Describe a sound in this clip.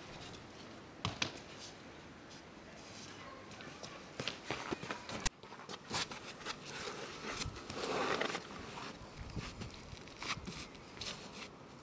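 Gloved hands and shoes scrape and scuff on a concrete wall.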